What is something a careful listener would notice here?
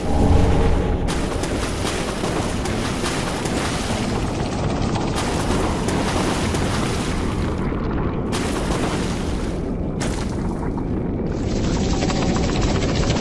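Armoured footsteps splash through shallow water.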